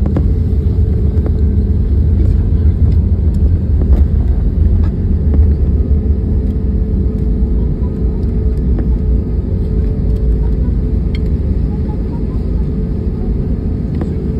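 An airliner's turbofan engines drone while taxiing, heard from inside the cabin.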